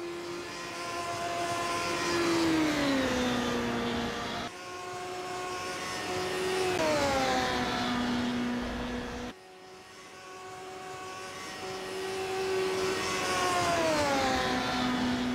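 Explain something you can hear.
A race car engine revs high and drops in pitch as the gears shift.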